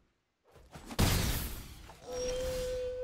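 A game's magic spark strikes with a sharp whoosh.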